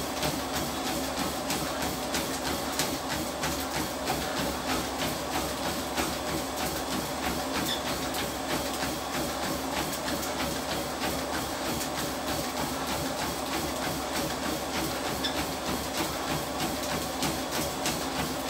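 Footsteps pound quickly and rhythmically on a treadmill belt.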